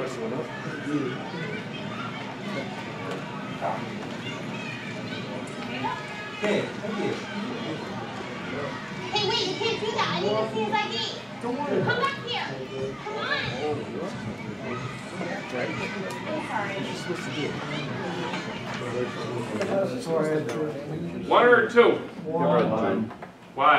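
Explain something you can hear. Crowd chatter and voices play through a loudspeaker in a room.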